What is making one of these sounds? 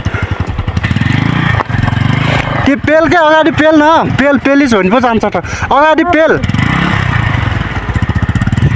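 A motorcycle engine idles and revs with a rapid, throbbing beat.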